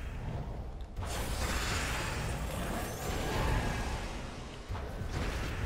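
A crackling electric zap bursts loudly.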